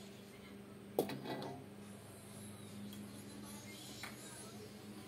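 A metal spoon scrapes and clinks against a wok.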